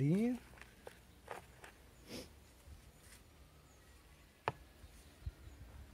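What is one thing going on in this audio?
A plastic plant pot knocks and scrapes on a hard surface.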